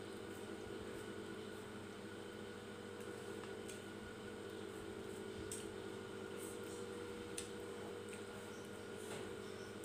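A woman chews food noisily close by.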